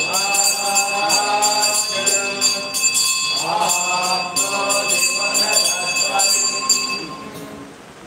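A small hand bell rings continuously.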